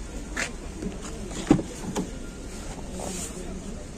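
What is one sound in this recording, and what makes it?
A car door latch clicks and the door swings open.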